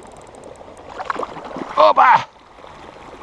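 A fish splashes in the water.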